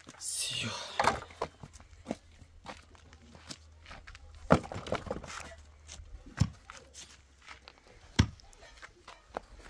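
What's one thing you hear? Wooden boards knock and clatter against each other.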